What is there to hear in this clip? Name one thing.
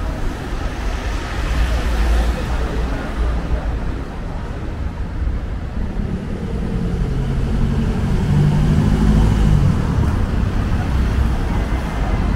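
Traffic rumbles steadily along a town street outdoors.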